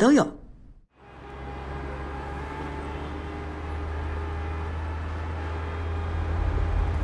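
Traffic rumbles steadily along a city road.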